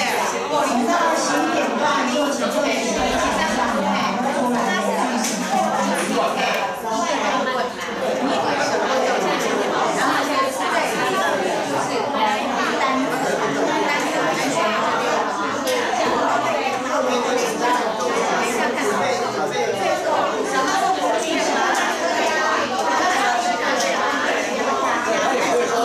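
A woman speaks steadily through a microphone in a large room with a slight echo.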